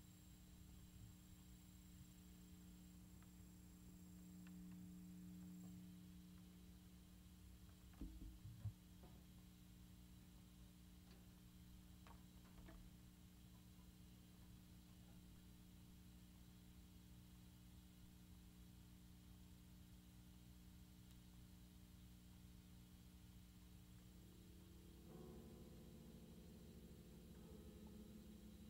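A gong rings out after being struck.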